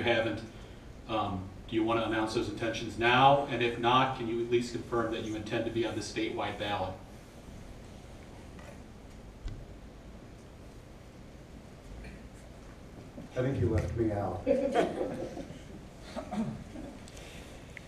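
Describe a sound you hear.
A woman speaks calmly into a microphone, heard over loudspeakers in a large room.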